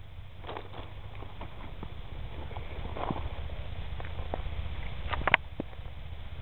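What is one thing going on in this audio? A stick pokes into a lemon with faint squelches.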